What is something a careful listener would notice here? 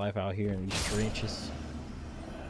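A blade strikes with a sharp, crackling burst.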